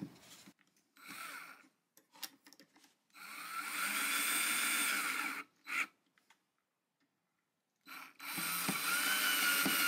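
A cordless drill whirs in short bursts, driving a screw.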